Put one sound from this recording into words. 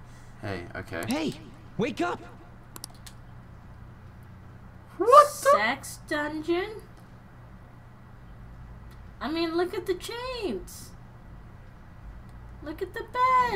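A young woman talks close to a microphone.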